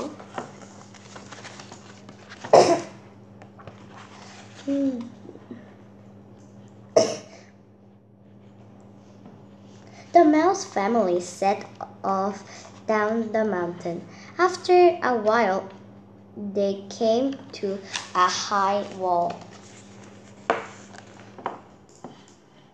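Book pages rustle and flip.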